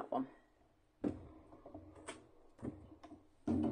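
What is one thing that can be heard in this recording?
A stamp is set down with a light knock on a hard surface.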